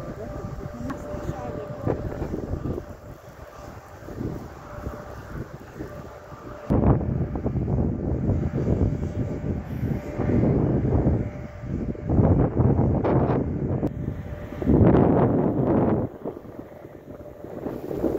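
Strong wind gusts roar and buffet outdoors.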